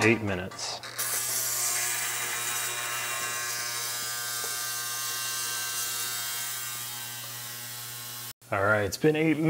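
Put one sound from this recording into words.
An ultrasonic cleaner buzzes with a steady high hiss.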